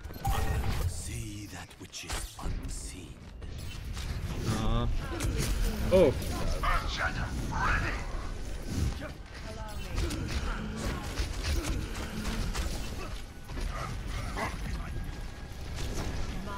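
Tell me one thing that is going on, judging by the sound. A bowstring twangs as arrows are loosed in quick succession.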